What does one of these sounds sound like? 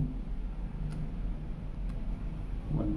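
Calculator buttons click under a finger.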